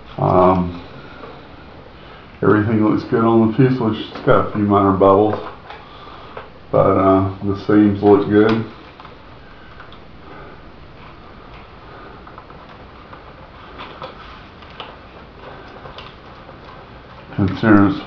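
A man speaks calmly close by, in short bursts.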